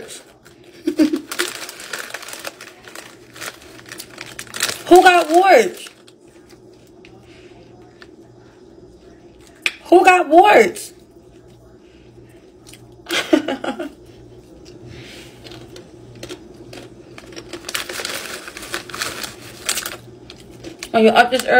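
A snack bag crinkles and rustles.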